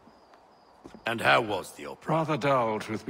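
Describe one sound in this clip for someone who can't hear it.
A man asks a question in a calm voice.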